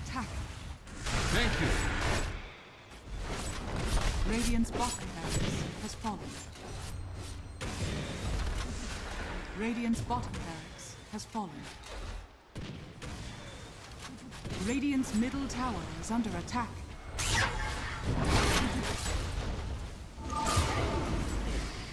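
Magic spells crackle and burst during a fight.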